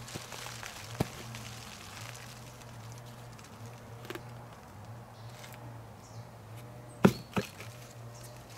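A plastic plant pot knocks sharply.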